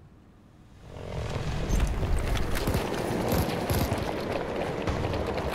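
Gunfire rattles amid a loud battle.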